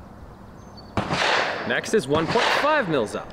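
A rifle fires a loud shot outdoors.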